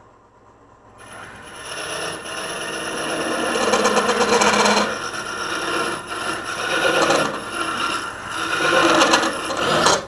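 A hollowing tool scrapes and chatters against spinning wood.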